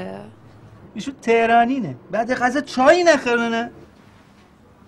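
A man speaks with amusement nearby.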